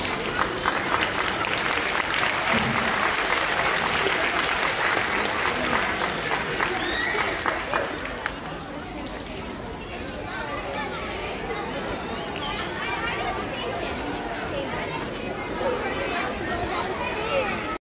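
A crowd of young children chatters and cheers loudly nearby.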